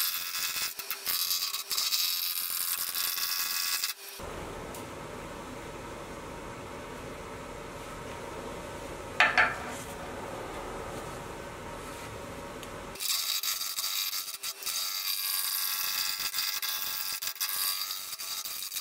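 A chisel scrapes and hisses against spinning wood on a lathe.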